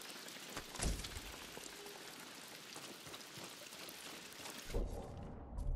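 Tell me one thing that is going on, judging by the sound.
Wind blows steadily through a forest.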